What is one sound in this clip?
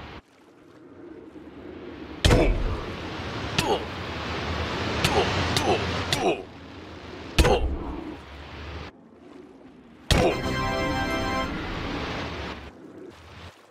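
Water bubbles and fizzes in a game.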